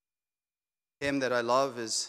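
A man speaks calmly through a microphone.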